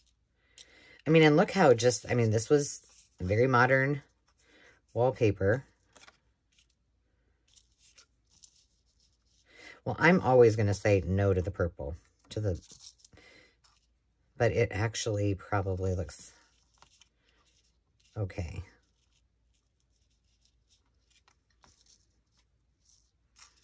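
Paper and lace rustle softly as hands handle them.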